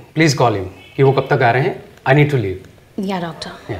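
A woman speaks firmly and urgently nearby.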